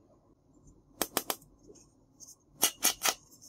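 Small plastic toy pieces click and tap together in quick bursts.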